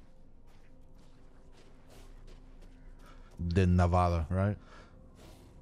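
Footsteps crunch slowly through snow.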